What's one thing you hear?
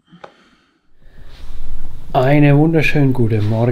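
A young man speaks close up, with animation.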